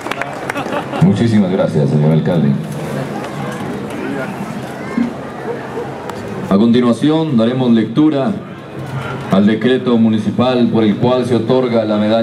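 A man speaks over a loudspeaker in a steady, formal voice.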